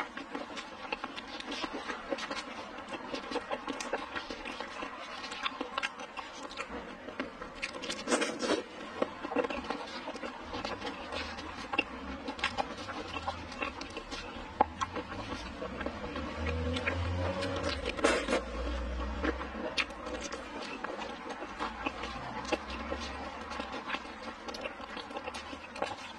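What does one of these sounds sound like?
Shellfish shells crack and crunch close by.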